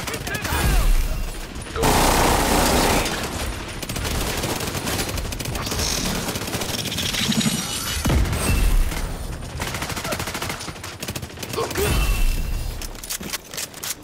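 Rapid gunfire rattles and bangs nearby.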